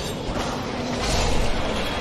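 A sword slashes and strikes with a metallic clang.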